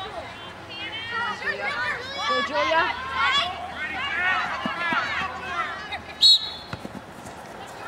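A soccer ball thuds when kicked.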